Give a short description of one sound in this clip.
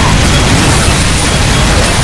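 A flamethrower roars in short bursts.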